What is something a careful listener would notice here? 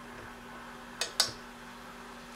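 A stove knob clicks.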